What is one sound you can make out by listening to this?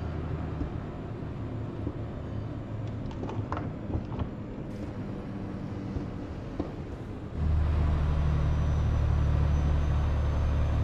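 A truck engine hums steadily, growing louder partway through.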